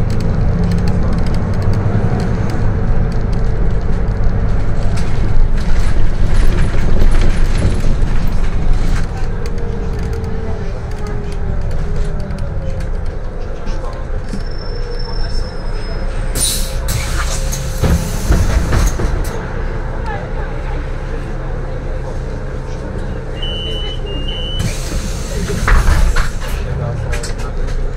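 Windows and panels rattle as the bus drives over the road.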